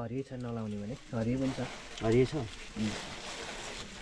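A plastic bag rustles as hands rummage in it.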